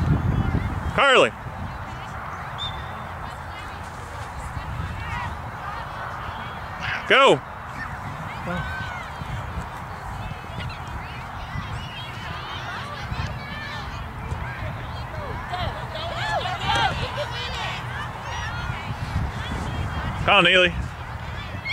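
Adult spectators, men and women, cheer and shout loudly now and then.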